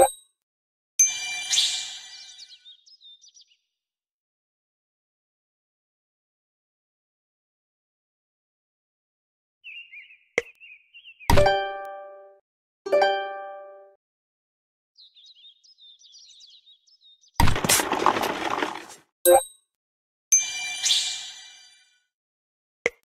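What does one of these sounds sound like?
Short chiming game sound effects ring out now and then.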